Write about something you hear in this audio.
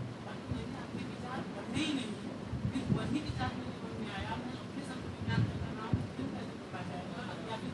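A man speaks steadily to an audience.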